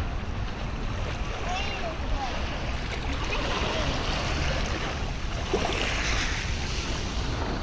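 A young girl's hands splash in shallow water.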